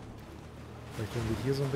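A young man speaks close into a microphone.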